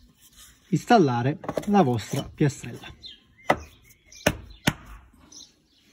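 A stone tile knocks and settles onto the ground.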